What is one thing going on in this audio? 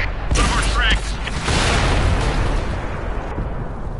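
An explosion bursts as a tank is hit.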